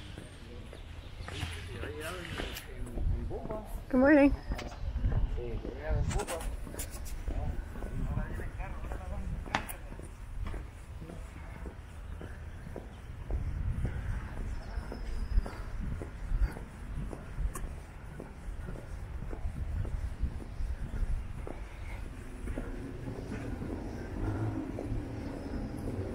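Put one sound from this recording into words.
Footsteps tap steadily on a paved sidewalk outdoors.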